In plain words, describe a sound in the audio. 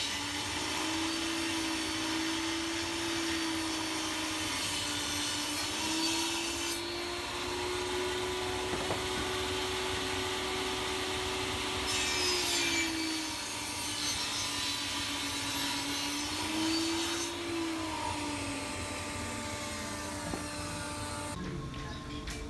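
A table saw motor whines steadily, dropping in pitch as the blade cuts through tile.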